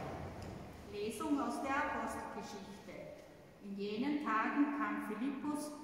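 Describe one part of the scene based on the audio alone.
An older woman speaks calmly through a microphone in a large echoing hall.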